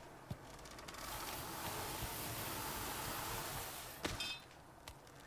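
A rope whirs as a climber slides down it.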